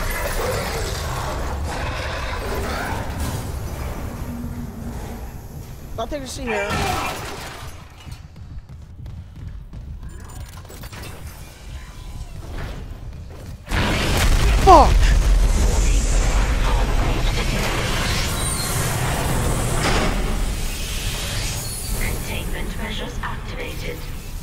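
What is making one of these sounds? A low mechanical rumble drones, growing loud and heavy partway through.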